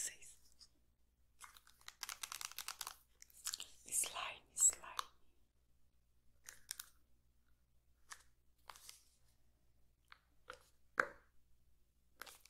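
Fingernails tap and crinkle on a small plastic container.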